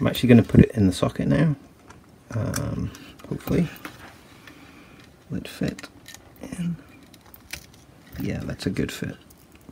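A chip's metal pins scrape and click as it is pushed into a socket on a circuit board.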